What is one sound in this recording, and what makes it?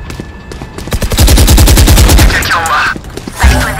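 A submachine gun fires a rapid burst of shots.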